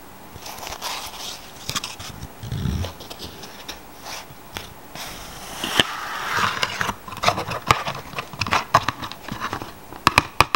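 Cardboard rubs and scrapes as a card box is opened.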